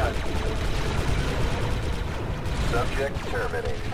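Energy bolts crackle and explode on impact.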